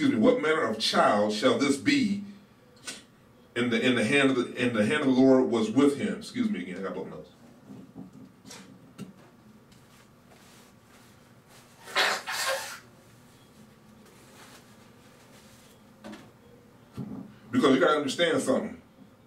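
A middle-aged man speaks calmly into a microphone close by, with long pauses.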